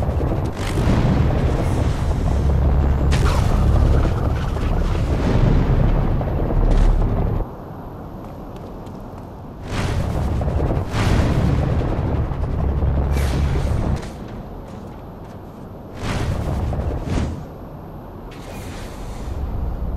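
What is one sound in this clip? Wind rushes loudly past a figure gliding fast through the air.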